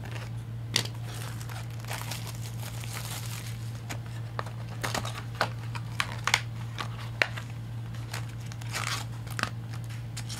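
Plastic wrapping crinkles and tears as hands open a pack.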